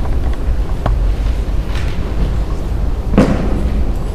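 A page of sheet music rustles as it is turned.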